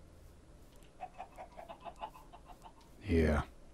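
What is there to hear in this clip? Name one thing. Footsteps tread softly on grass.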